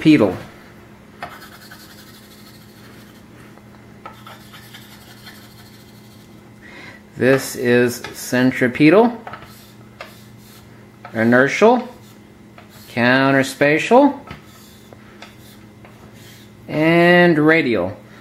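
Chalk scratches and taps on a slate board.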